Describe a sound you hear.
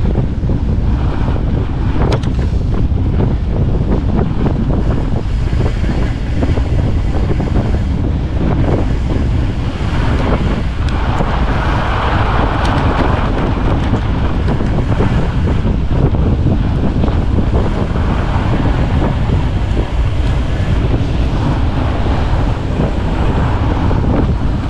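Wind buffets the microphone with a steady low rumble.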